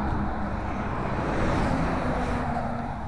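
A car drives by.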